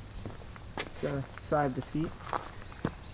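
A man speaks briefly and casually nearby.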